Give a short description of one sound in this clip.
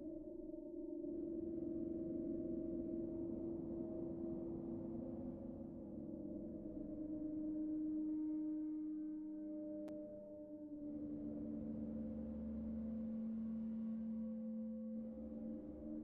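A synthesizer plays a buzzing, rhythmic texture.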